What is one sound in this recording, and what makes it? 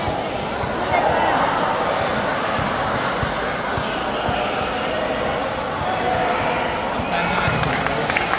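A crowd of young people chatter and call out in a large echoing hall.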